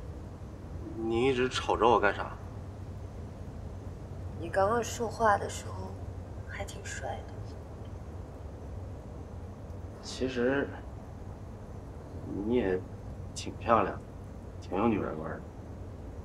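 A young man speaks in a low, troubled voice close by.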